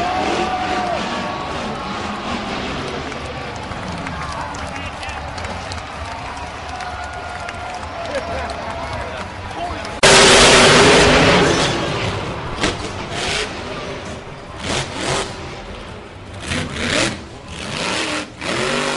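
A monster truck engine roars and revs.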